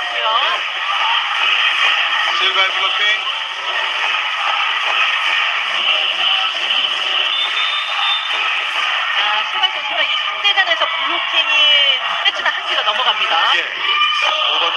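A large crowd cheers and chants loudly in an echoing arena.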